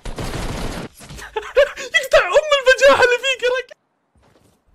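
A young man shouts excitedly through a headset microphone.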